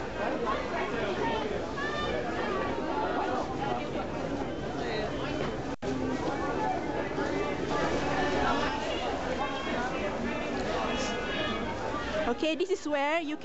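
A busy crowd chatters all around, outdoors.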